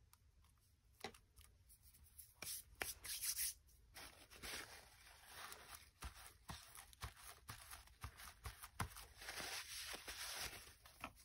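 Hands rustle and brush over coarse fabric and paper.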